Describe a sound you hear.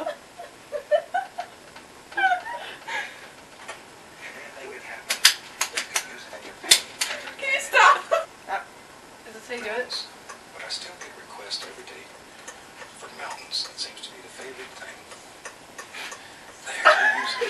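Young women talk casually nearby.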